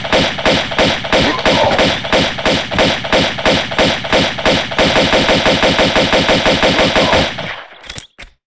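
Pistols fire in rapid, steady bursts.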